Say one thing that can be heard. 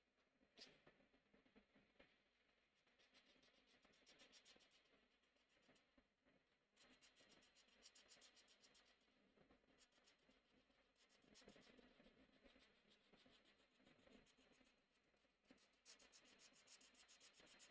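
A marker scratches and squeaks rapidly across paper.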